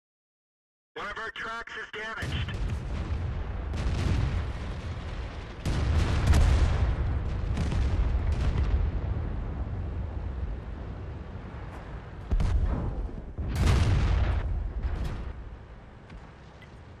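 A tank engine rumbles heavily.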